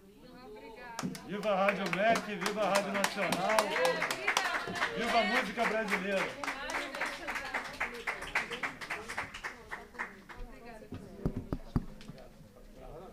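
A crowd claps and applauds in a room.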